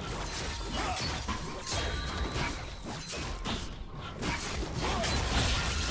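Sword slashes and magic blasts clash with sharp whooshes and impacts.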